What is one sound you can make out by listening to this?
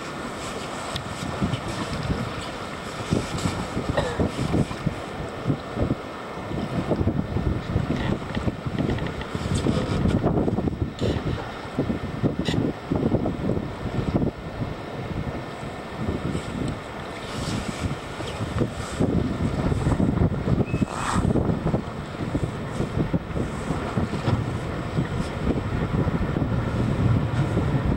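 Strong wind buffets and roars outdoors.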